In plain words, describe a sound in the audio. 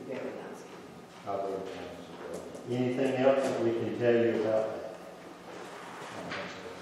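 A man speaks calmly across a table in a room with a slight echo.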